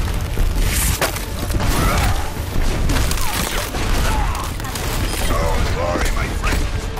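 Heavy weapon fire booms and crackles repeatedly.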